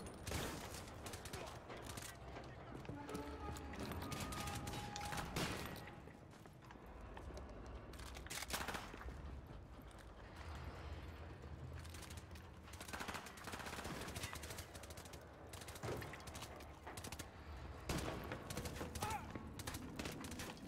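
Gunfire bursts out in short, loud volleys.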